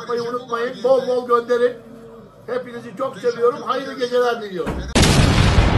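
An elderly man sings loudly and with animation close by.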